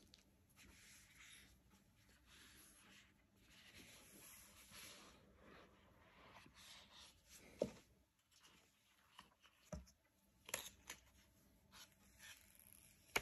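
Cardboard packaging rustles and scrapes as hands handle it.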